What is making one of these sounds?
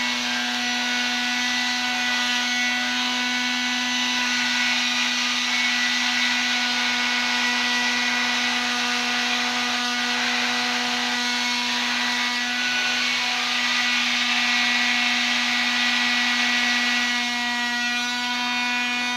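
A power tool whirs steadily nearby.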